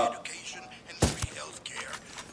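A suppressed rifle fires a single shot.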